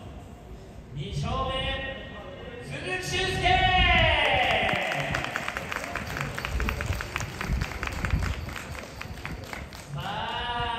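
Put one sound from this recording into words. A man speaks with animation into a microphone, heard over loudspeakers outdoors.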